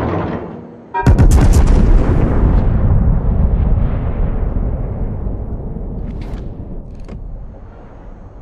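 Heavy battleship guns fire a salvo with a deep, rumbling boom that slowly fades.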